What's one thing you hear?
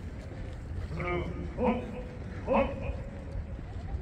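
A man shouts long, drawn-out commands loudly.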